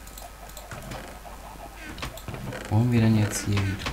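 A wooden chest lid creaks and thumps shut.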